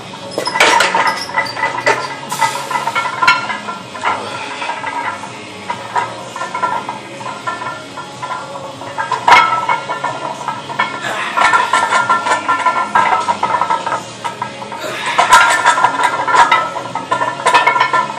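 A loaded barbell clanks against a metal rack.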